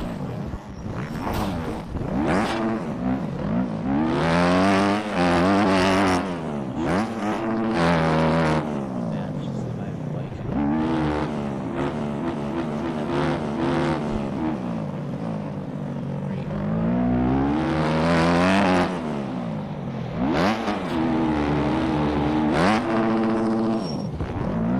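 A dirt bike engine revs high, rising and falling as it shifts gears.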